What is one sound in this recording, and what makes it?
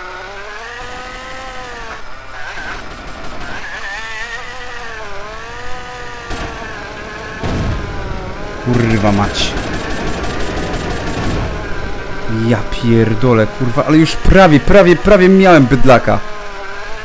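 A car engine hums steadily, rising and falling in pitch.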